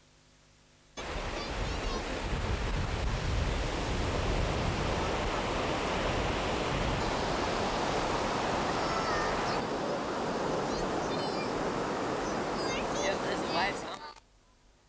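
Wind blows across a microphone outdoors.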